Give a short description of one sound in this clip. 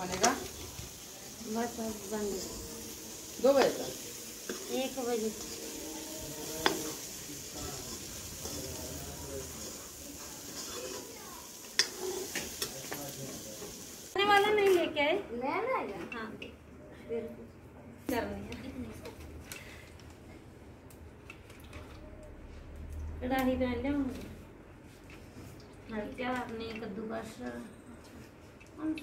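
Women talk nearby in casual voices.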